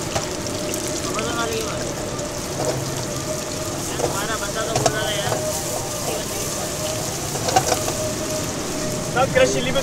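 A metal spatula scrapes and clanks against a pan.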